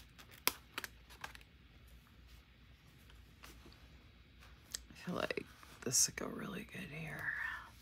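A sticker peels off a backing sheet.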